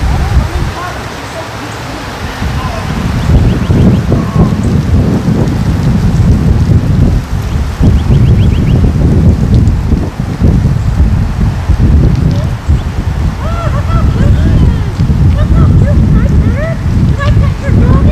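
Wind blusters outdoors, rumbling steadily and gusting.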